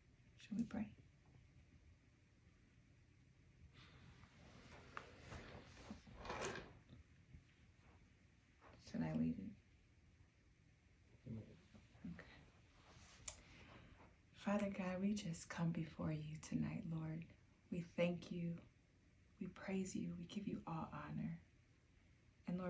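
A woman speaks softly and warmly up close.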